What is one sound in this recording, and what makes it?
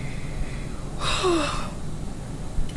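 A young woman sighs softly.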